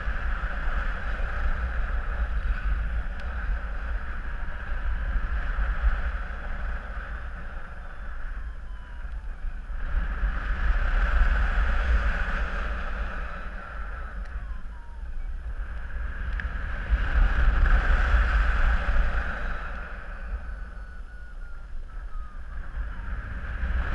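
Wind rushes loudly over the microphone high in the open air, swelling and easing in waves.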